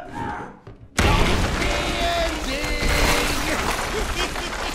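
Wood splinters and debris crashes loudly nearby.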